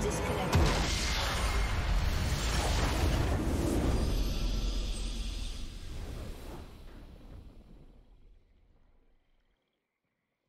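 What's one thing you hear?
A triumphant victory fanfare swells and then fades out.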